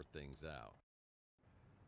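A young man speaks excitedly into a close microphone.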